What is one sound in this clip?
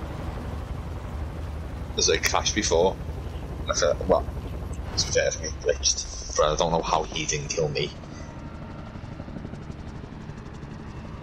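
Helicopter rotors drone with a low, steady rumble.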